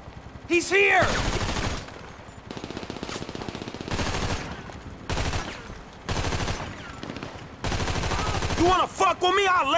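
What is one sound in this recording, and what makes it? A rifle fires loud bursts that echo in a large hall.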